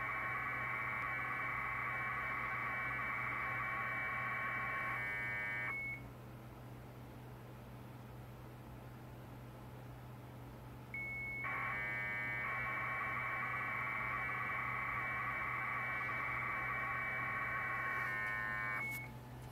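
A modem sends data with a steady, high warbling screech that stops and then starts again.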